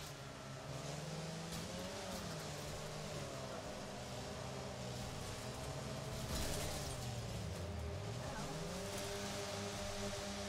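A game van's engine revs and drones, rising and falling in pitch.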